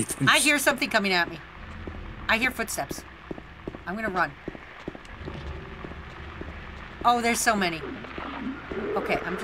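Footsteps run steadily on a hard road.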